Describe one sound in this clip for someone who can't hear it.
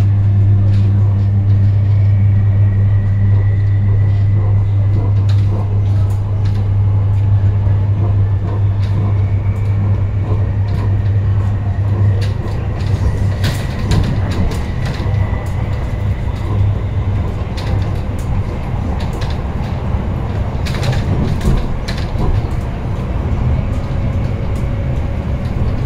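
A train rumbles and clatters steadily along the tracks, heard from inside a carriage.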